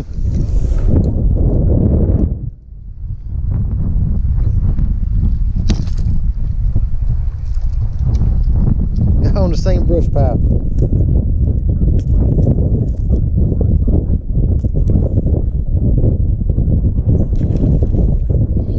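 Wind rumbles steadily outdoors on open water.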